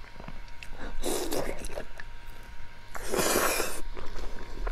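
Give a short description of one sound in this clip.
A young woman slurps food close to a microphone.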